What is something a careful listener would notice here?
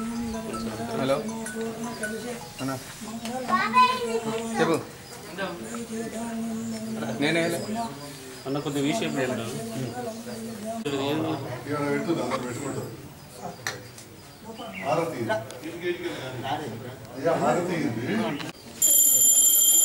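An elderly man talks with animation, close by.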